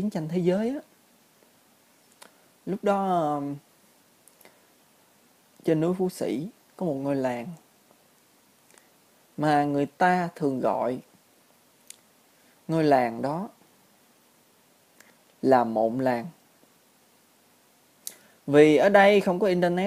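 A young man talks calmly into a microphone close by, in short bursts with pauses.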